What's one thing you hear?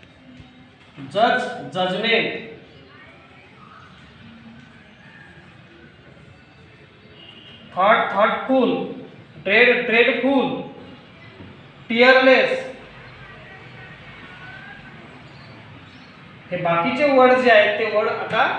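A man speaks aloud in short bursts, close by.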